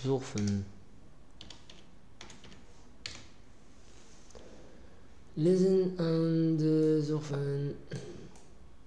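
A man speaks calmly and slowly into a microphone.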